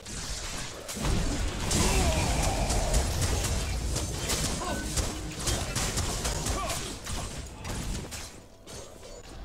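Game combat effects whoosh and clash loudly.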